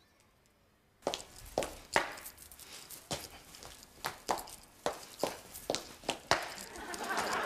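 Heels tap steadily on a hard floor.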